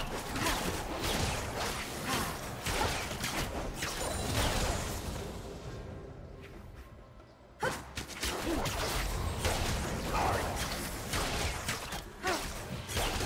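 Fantasy spell effects whoosh and clash in quick bursts.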